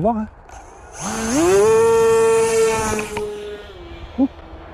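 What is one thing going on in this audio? A small electric propeller motor revs up to a loud, high whine, then fades.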